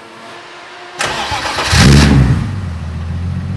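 A car engine cranks, starts and revs briefly.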